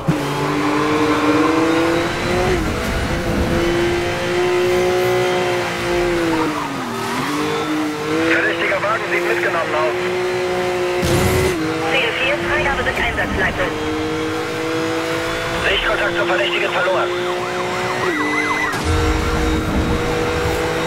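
A car engine roars at high speed, its pitch climbing and dropping sharply with each gear change.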